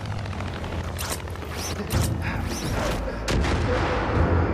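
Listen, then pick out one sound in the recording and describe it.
A body crashes down on rocks.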